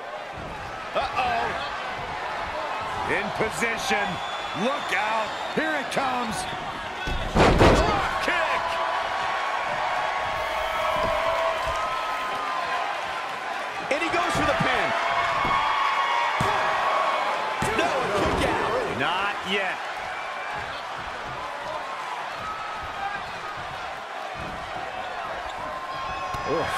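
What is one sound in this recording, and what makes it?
A large crowd cheers and murmurs throughout.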